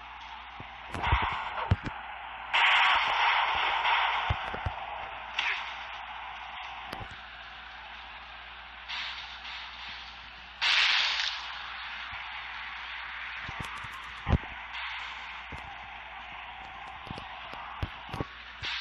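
Heavy thuds slam down again and again.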